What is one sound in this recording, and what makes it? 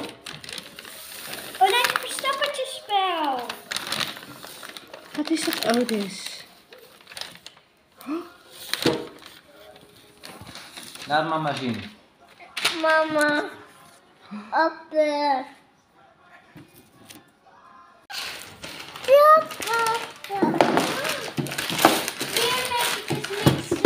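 Wrapping paper rustles and tears.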